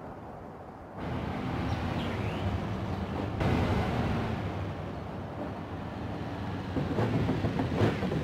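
A car engine hums steadily as a car drives along a road.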